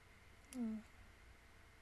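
A young woman makes a brief low murmur close to a microphone.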